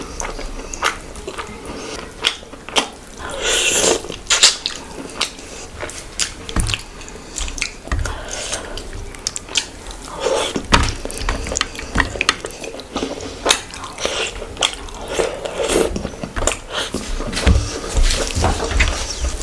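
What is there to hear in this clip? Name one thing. Fingers squish and mix soft food with gravy close to a microphone.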